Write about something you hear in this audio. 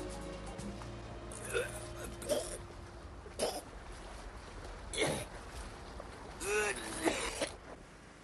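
Waves lap against a boat's hull.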